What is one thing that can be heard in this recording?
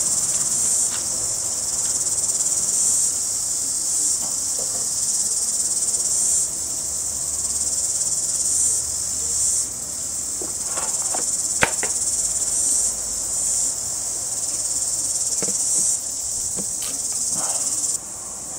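Sharp electric sparks snap now and then.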